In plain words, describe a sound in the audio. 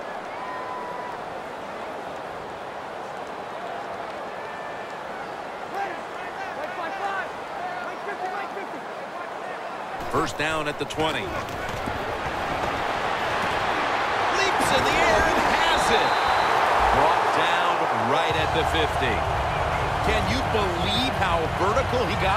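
A large crowd murmurs steadily, then cheers louder.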